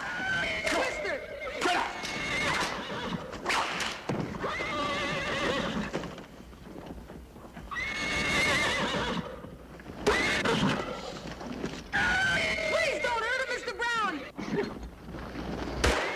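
A young boy shouts in alarm.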